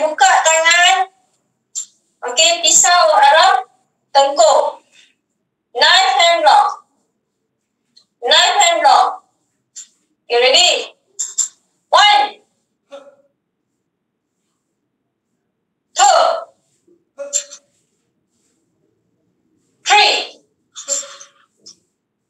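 A young woman calls out loudly in short bursts, heard through an online call.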